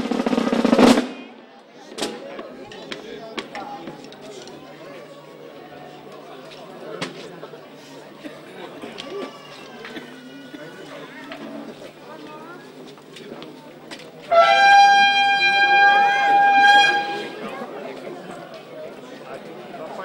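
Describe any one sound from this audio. Drums beat loudly in a street procession.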